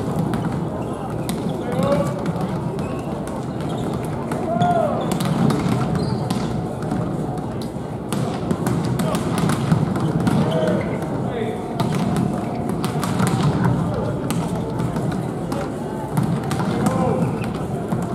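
Volleyballs bounce with sharp smacks on a hard floor.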